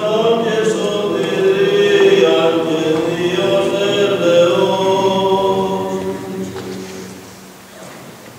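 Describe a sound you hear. A choir of men chants together in a large echoing church.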